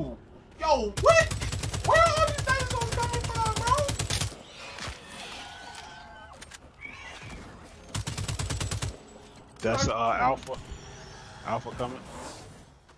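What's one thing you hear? A young man shouts with excitement into a microphone.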